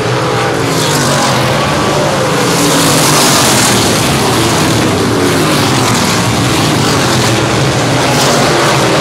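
Loud racing engines roar and whine as race cars speed past.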